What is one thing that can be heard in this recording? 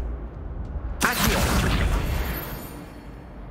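A magic spell crackles and whooshes.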